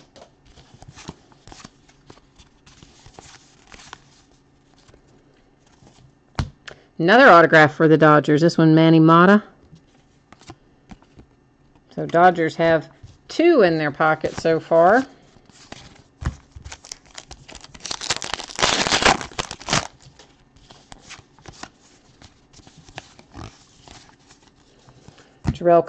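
Trading cards rustle and click as hands shuffle through them.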